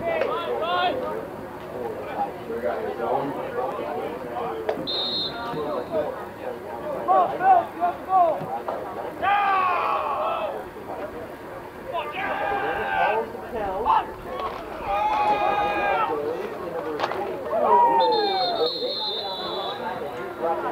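Young men talk and call out nearby outdoors.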